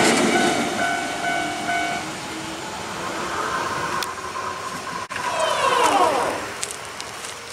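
A train rumbles along the rails and fades into the distance.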